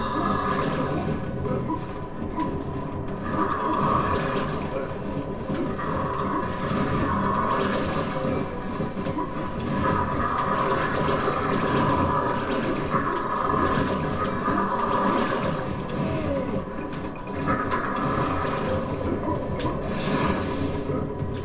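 Video game music plays steadily with a driving beat.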